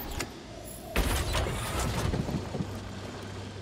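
A heavy metal door slides open with a whoosh.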